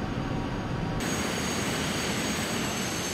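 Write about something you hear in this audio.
A jet engine whines loudly and shrilly close by.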